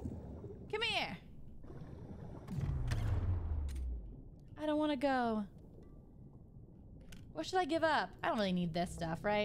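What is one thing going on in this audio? A young woman speaks with animation close to a microphone, her voice rising high and excited.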